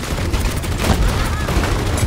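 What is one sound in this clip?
Explosions burst nearby.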